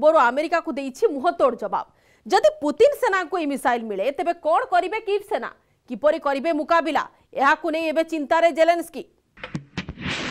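A young woman speaks clearly into a microphone, like a news presenter.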